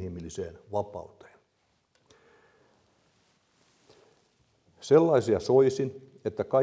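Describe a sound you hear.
An elderly man speaks calmly into a microphone in an echoing hall, with pauses.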